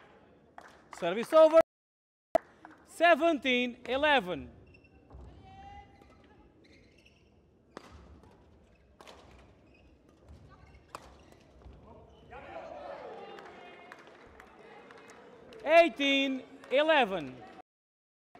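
Young women shout loudly in a large echoing hall.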